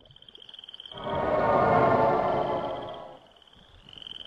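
A magic spell rings out with a shimmering chime.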